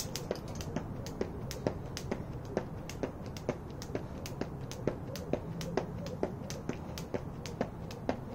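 Sneakers land lightly on pavement with each jump.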